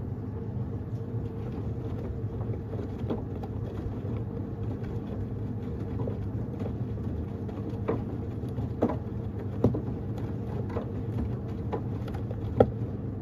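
Laundry tumbles and thumps inside a washing machine drum.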